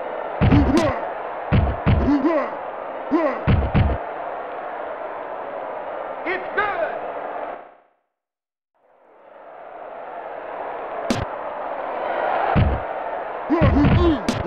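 Heavy thumps sound as football players collide.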